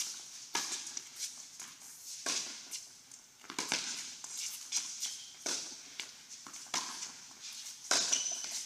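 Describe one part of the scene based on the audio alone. Tennis balls are struck with rackets, echoing in a large indoor hall.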